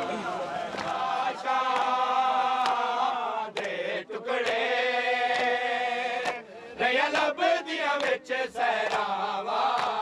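A man sings a lament loudly into a microphone.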